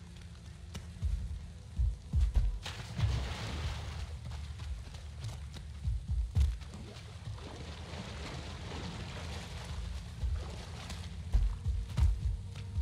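Footsteps thud softly on the ground.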